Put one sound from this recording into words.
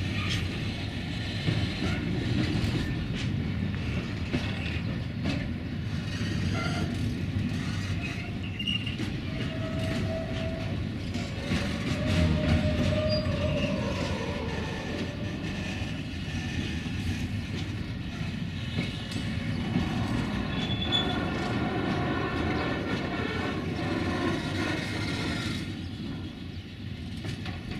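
Train wheels clatter and squeal rhythmically on the rails.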